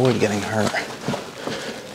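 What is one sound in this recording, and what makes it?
Footsteps crunch on loose rubble.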